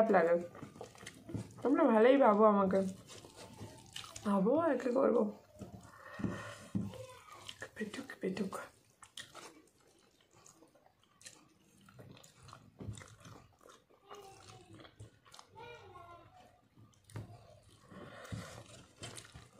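Fingers squelch and mix food on a metal plate.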